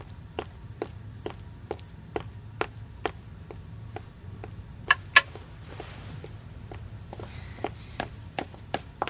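Hard-soled footsteps walk at a steady pace on a hard floor.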